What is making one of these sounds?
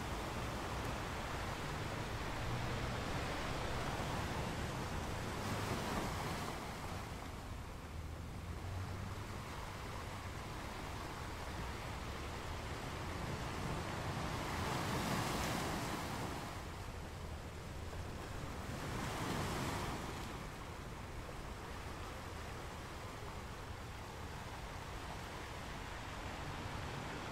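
Foamy water washes and hisses over rocks.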